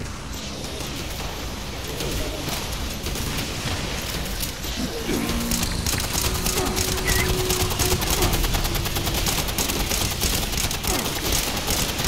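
Energy blasts crackle and explode.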